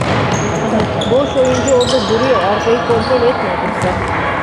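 Young girls shout and call out in an echoing hall.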